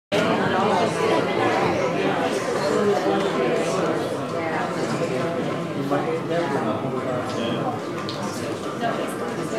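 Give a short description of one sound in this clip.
Many people murmur and chat quietly nearby.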